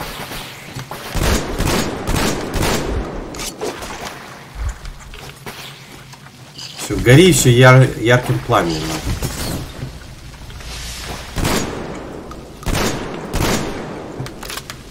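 A weapon fires in bursts with loud bangs.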